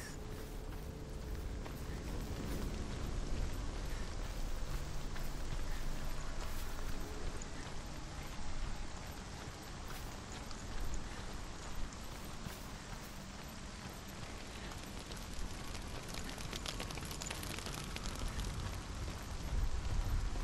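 Footsteps run over earth and stone.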